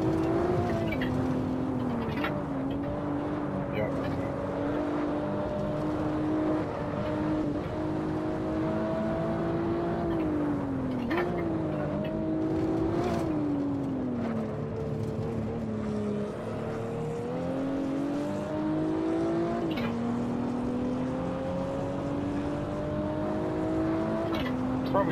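A car engine roars steadily, rising and dropping in pitch with gear shifts.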